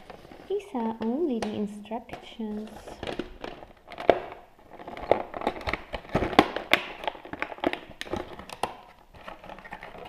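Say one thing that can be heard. Cardboard scrapes and taps as a box is handled.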